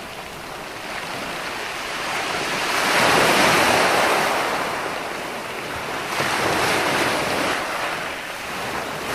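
Ocean waves break and wash onto a sandy shore, rising and falling in loud rushing surges.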